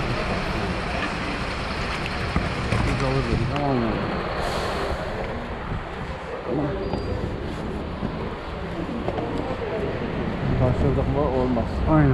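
A man talks calmly, close to the microphone.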